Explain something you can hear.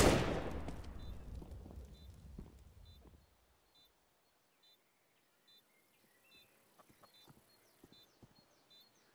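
A bomb beeps steadily about once a second.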